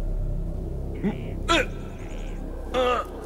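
A young man groans in pain.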